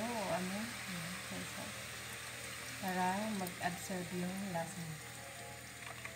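Oil pours from a bottle into a pot.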